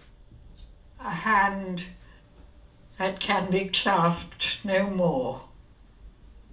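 A woman reads out aloud.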